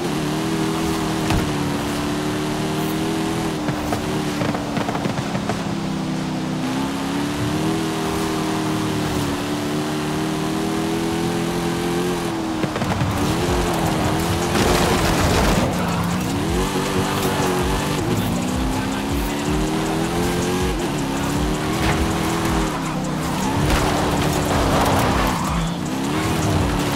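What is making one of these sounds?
A powerful car engine roars, rising and falling as it shifts gears.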